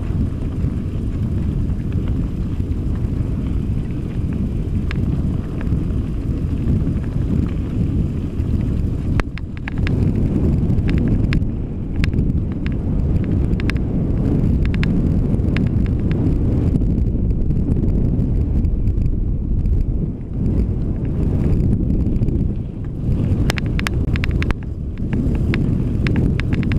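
Wind rumbles loudly past a moving bicycle rider.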